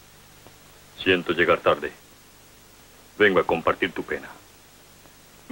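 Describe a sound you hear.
An older man speaks calmly and firmly, close by.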